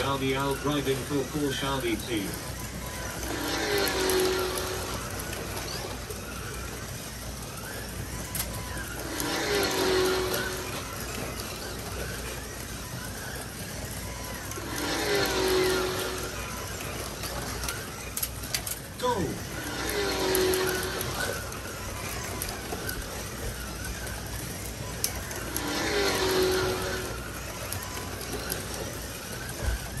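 Small electric race cars whir along a plastic track, rising and fading in waves as they pass.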